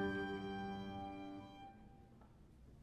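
A piano and a clarinet hold a final chord that fades away.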